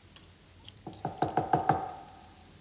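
A woman sips and swallows water.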